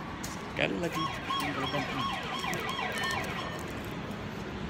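A ticket gate beeps in quick, repeated electronic tones.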